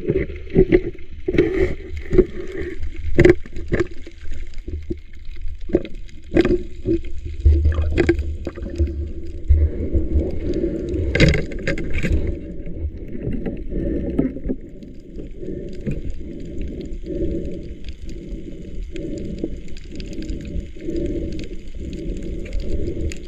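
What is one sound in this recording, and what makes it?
A metal spear knocks and clicks, muffled underwater.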